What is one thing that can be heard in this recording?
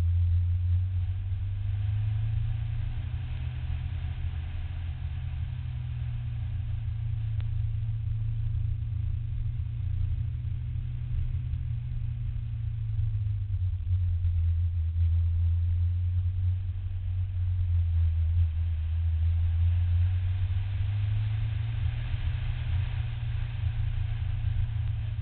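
A car engine drones loudly and steadily from inside the car, rising and falling in pitch as the car speeds up and slows.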